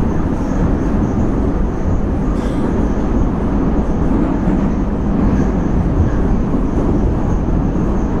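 A subway train rumbles and roars loudly along the tracks.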